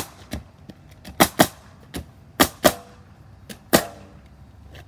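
A nail gun fires sharp bangs into roof shingles.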